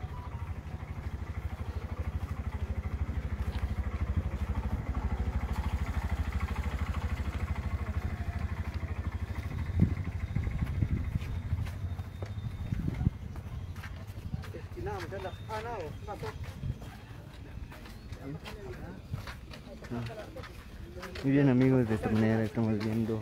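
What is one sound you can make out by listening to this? Footsteps shuffle on a paved street.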